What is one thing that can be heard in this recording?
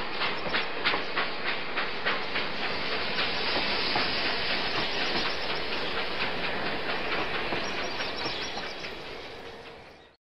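A toy train clatters rhythmically along the tracks and fades into the distance.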